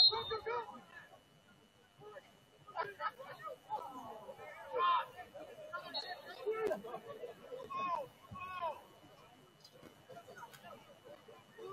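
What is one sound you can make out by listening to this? Young players shout and call to one another outdoors on an open field.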